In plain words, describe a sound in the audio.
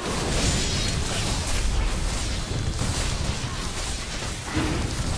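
A winged beast beats its wings heavily in a fight.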